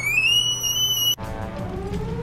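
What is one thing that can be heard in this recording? A frog lets out a long, high-pitched scream.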